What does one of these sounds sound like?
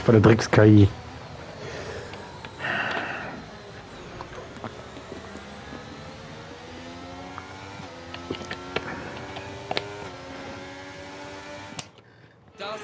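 A race car engine whines at high revs, rising and falling in pitch.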